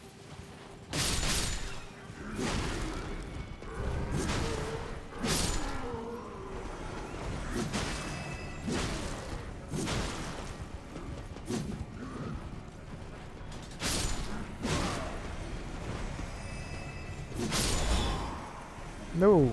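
Heavy weapon blows land with loud thuds and clashes.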